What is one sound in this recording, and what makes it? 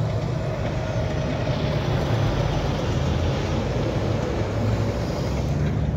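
A tanker truck's engine rumbles as it rounds the road.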